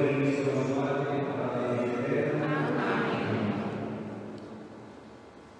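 A man chants in a steady, sustained voice through a microphone in a large echoing hall.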